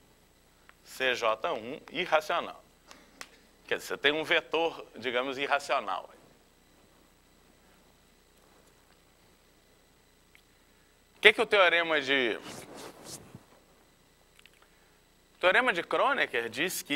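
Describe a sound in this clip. A man lectures calmly through a microphone, in short bursts with pauses.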